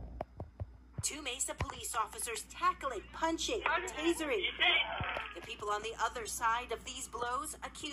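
A man talks loudly, heard through a television loudspeaker.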